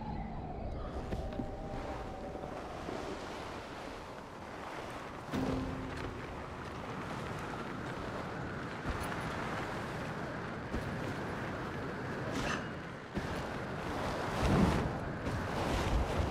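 A snowboard carves and hisses over snow.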